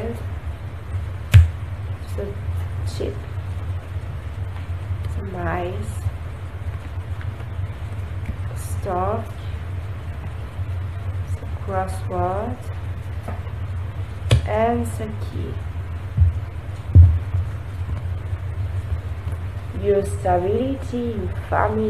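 Cards tap and slide on a table.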